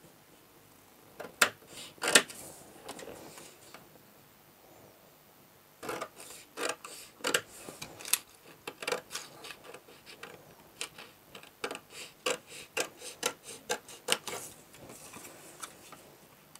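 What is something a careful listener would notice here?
Scissors snip through stiff paper in short, repeated cuts.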